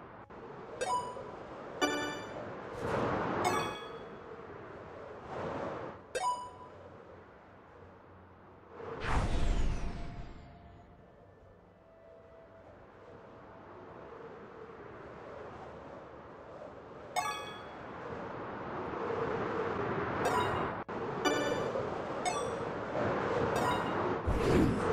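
Wind rushes past in a video game.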